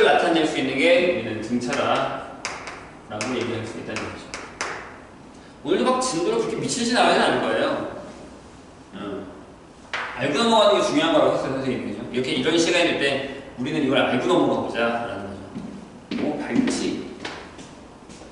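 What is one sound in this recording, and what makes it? A man lectures with animation, close by.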